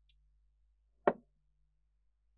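A book knocks against a wooden shelf.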